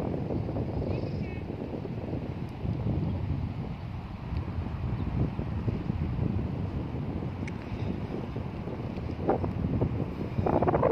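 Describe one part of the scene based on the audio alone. Wind blows steadily and rumbles outdoors.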